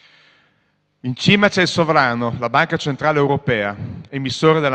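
A middle-aged man speaks with animation through a microphone.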